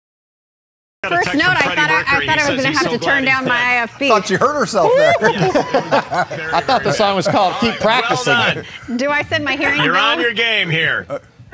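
Several men and women laugh and talk over one another with animation, heard through microphones.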